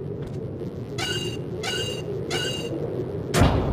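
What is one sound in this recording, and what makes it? A door keypad beeps several times.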